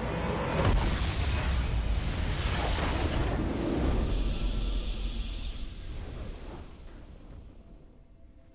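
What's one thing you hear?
A loud blast booms, then fades away.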